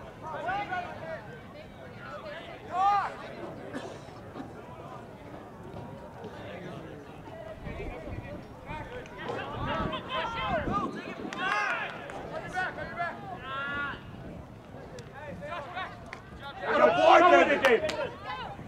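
Young players shout and call out to each other in the distance.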